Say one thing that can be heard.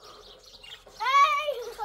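A young girl calls out in a high voice.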